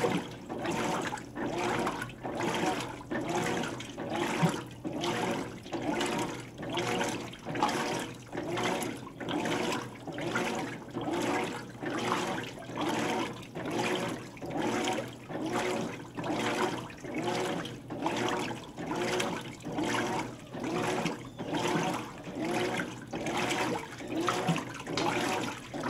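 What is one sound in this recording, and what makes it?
Water sloshes and swirls around clothes in a washing machine tub.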